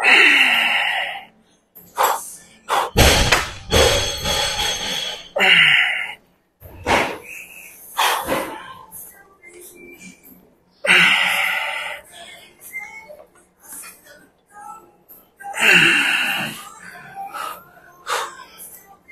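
A young man grunts and groans loudly with effort, close by.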